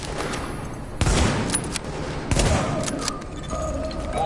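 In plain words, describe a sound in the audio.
Rifle shots ring out loudly, one after another.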